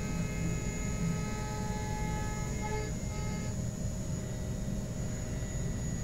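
A milling machine spindle whines steadily as it cuts metal.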